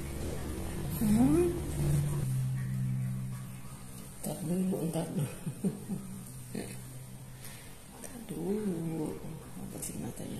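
A kitten mews softly.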